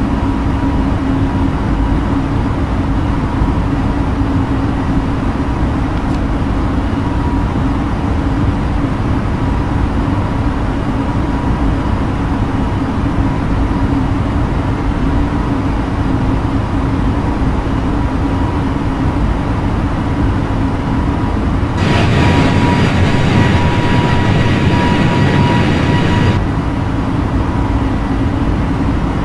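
A jet airliner's engines hum steadily from inside the cabin.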